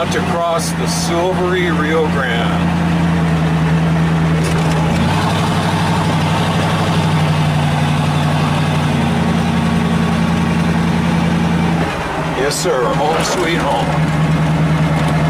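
An old car's engine hums steadily while driving.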